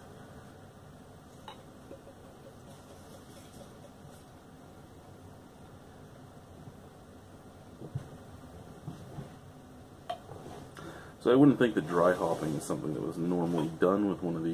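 Beer pours from a bottle into a glass.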